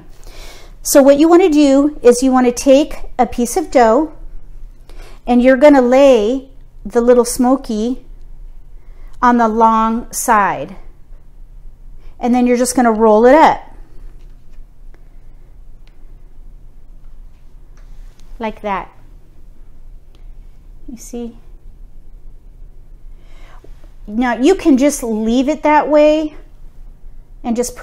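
A middle-aged woman talks calmly and close to a microphone, in short bursts with pauses.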